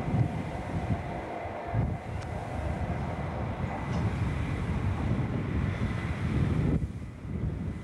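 A diesel train engine roars as a train rolls in close by.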